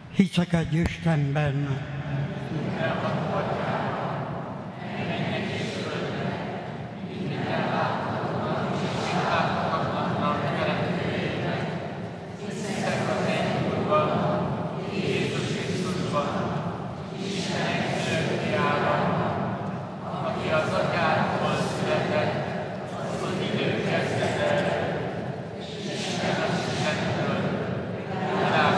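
A congregation sings together in a large echoing hall.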